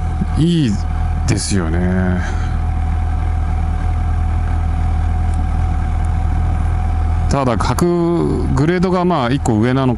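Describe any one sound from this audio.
A motorcycle engine revs up and down sharply.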